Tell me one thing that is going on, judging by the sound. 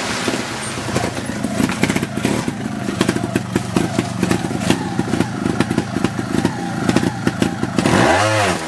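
Tyres crunch over dry leaves and rocks.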